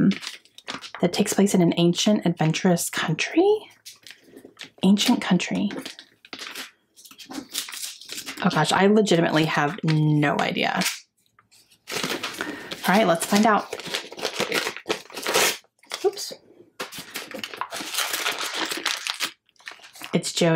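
Wrapping paper crinkles and tears as a gift is unwrapped.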